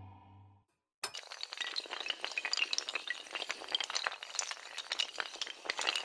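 Many blocks clatter and tumble as they topple.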